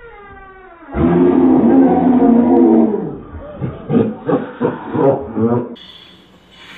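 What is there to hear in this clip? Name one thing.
A woman screams loudly in fright.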